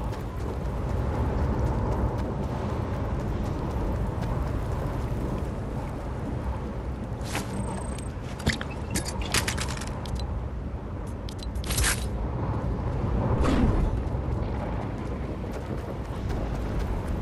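Footsteps patter quickly over grass and wooden boards.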